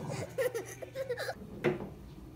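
A small terrier whines.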